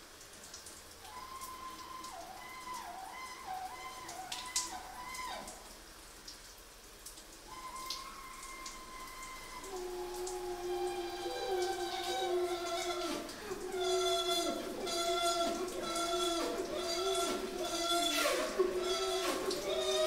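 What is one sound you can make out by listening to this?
A trumpet plays a melody close by, with a pause in the middle.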